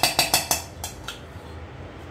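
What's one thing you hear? A metal spoon clinks against a pot.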